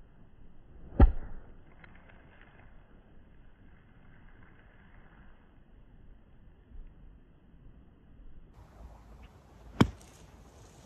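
A golf wedge splashes through sand under a ball.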